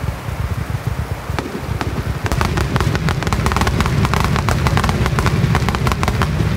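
Fireworks boom with deep rumbling thuds nearby.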